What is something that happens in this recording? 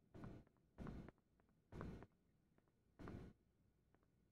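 Footsteps tap on a hard floor.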